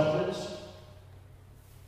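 A man speaks into a microphone over loudspeakers.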